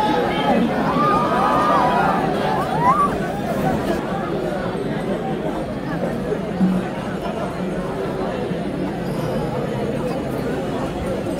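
A large crowd outdoors cheers and shouts excitedly all around.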